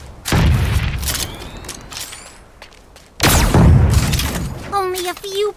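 A heavy gun fires loud booming shots.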